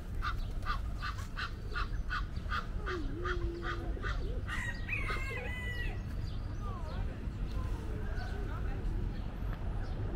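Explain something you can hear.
Pigeons coo and flutter on grass nearby.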